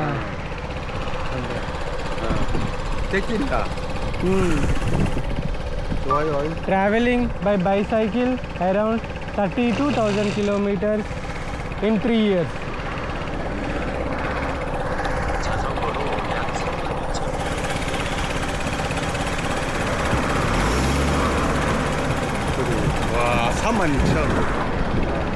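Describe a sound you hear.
A motorbike engine idles.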